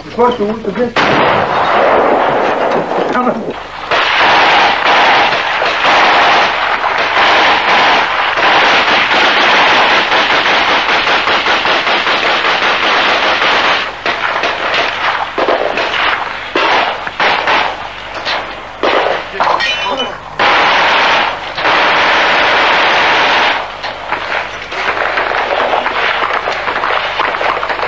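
Rifles fire in rapid bursts outdoors.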